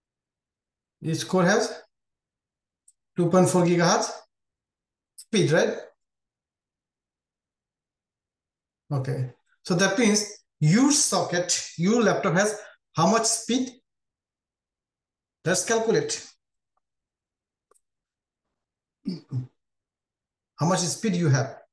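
A man speaks calmly and explains into a microphone, pausing between phrases.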